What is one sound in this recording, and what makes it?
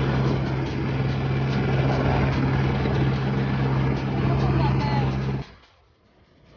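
A helicopter's engine and rotor drone loudly and steadily nearby.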